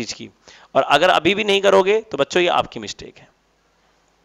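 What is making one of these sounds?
A man speaks clearly into a close microphone, explaining calmly.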